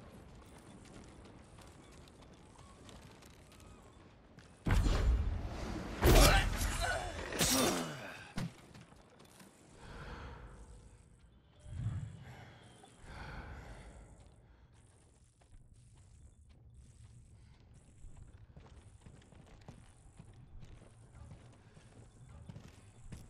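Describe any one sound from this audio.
Footsteps creak softly on wooden boards.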